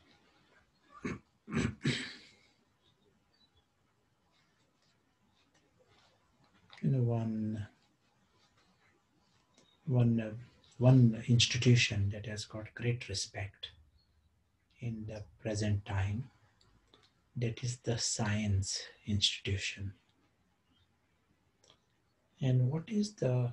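A middle-aged man speaks calmly and slowly, close to the microphone, with pauses.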